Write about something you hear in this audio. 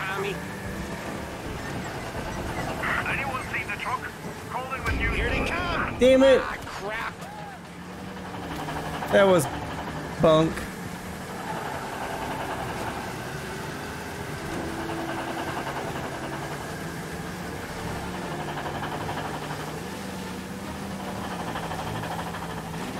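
A truck engine drones steadily as it drives.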